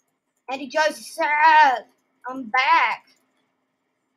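A young girl speaks with animation close to a microphone.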